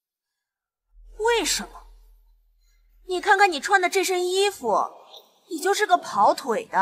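A young woman speaks sharply and with scorn, close by.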